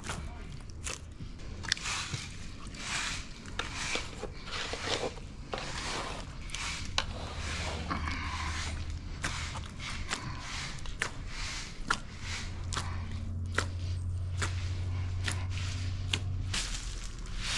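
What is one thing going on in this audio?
Hands knead and press soft dough in a metal bowl.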